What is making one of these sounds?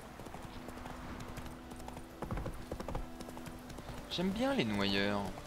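Horse hooves clop steadily along a path at a gallop.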